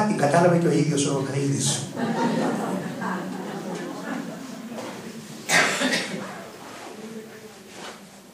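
An elderly man speaks calmly into a microphone, heard through a loudspeaker in an echoing hall.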